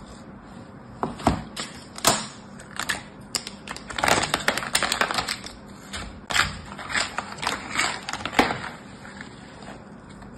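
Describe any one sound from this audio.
Plastic sand molds clatter and knock together.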